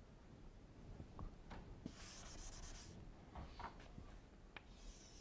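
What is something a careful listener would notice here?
Chalk taps and scrapes softly on a board.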